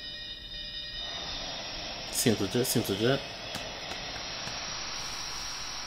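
A shimmering magical sound swells up and rings on.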